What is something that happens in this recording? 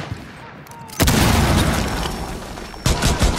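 A breaching charge explodes indoors with a heavy boom.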